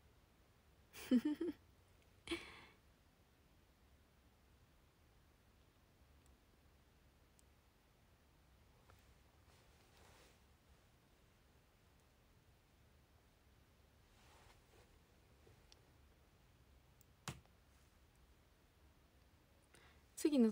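A young woman speaks quietly close by.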